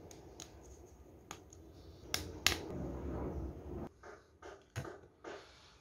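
Hard plastic toy parts click as they snap together.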